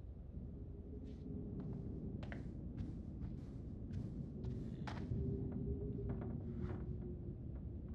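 Footsteps walk across a wooden floor.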